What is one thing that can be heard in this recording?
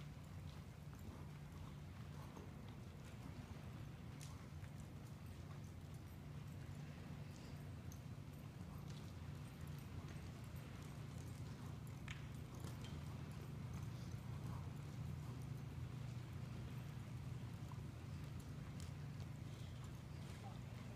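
A horse's hooves thud softly on soft dirt at a trot.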